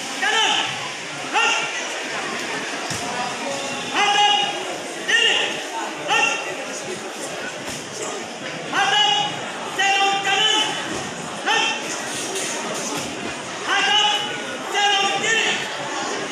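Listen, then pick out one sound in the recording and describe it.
A group of young people shout drill calls in unison outdoors.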